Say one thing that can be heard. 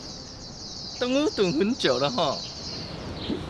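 A young woman asks a question cheerfully, close by.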